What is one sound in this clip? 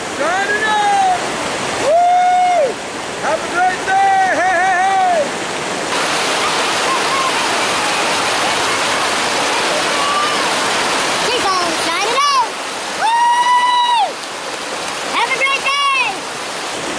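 Water rushes and splashes loudly over rocks.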